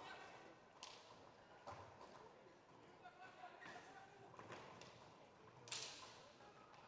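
Hockey sticks knock sharply against a ball.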